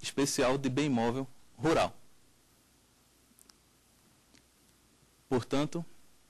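A man speaks clearly into a microphone, in short phrases with pauses.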